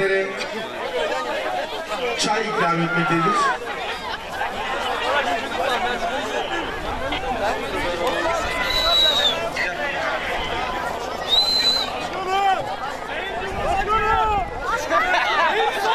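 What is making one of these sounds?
A large crowd of men shouts and cheers close by, outdoors.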